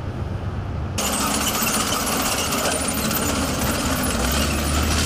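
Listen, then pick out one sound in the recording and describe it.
A heavy tracked vehicle's engine rumbles.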